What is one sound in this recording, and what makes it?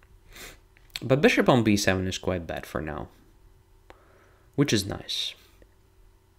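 A young man speaks calmly into a microphone, heard close up.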